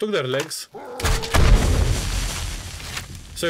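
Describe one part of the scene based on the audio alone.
A crossbow fires with a sharp thwack.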